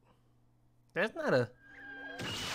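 A man speaks briefly in surprise, close by.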